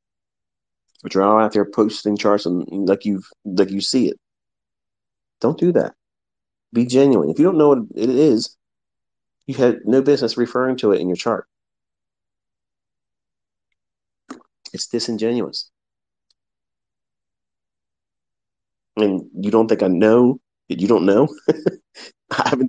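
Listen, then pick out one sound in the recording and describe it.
A man speaks calmly and closely into a microphone, with short pauses.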